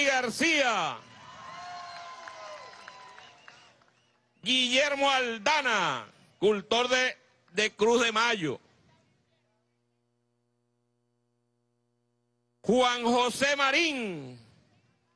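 An elderly man speaks forcefully through a microphone and loudspeakers outdoors, in bursts with pauses.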